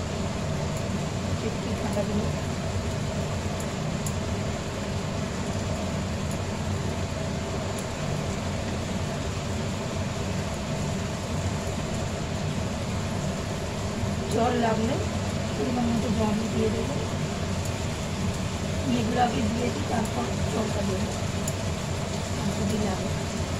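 A wooden spatula scrapes a frying pan.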